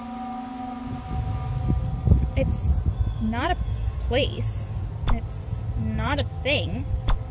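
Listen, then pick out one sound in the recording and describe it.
A young woman speaks calmly and close into a microphone.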